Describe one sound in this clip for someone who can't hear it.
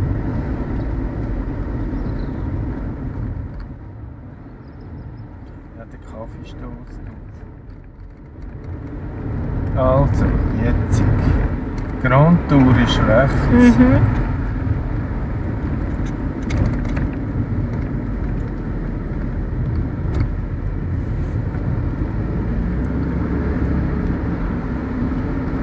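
A car engine hums steadily as the car drives, heard from inside.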